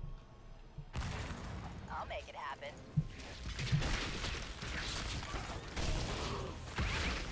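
Magic blasts and blows crackle and thud in a fantasy battle.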